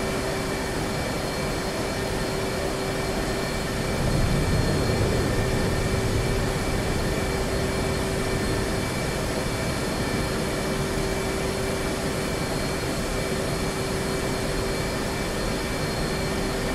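A jet engine hums and whines steadily.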